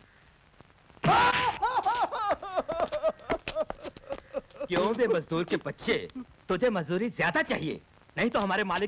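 Men shout and yell with agitation outdoors.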